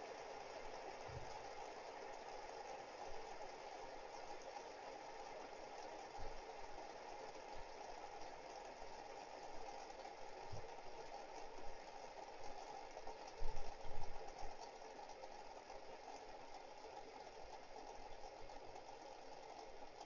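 Many fidget spinners whir steadily on a table.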